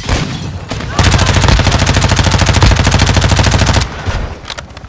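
Rapid gunfire rattles loudly in a fast burst.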